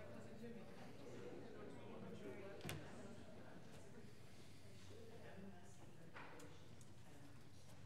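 Footsteps and soft shuffling echo in a large hall.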